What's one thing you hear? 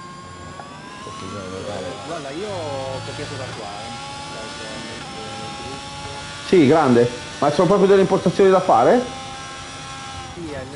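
A racing car engine whines at high speed, rising in pitch through the gears.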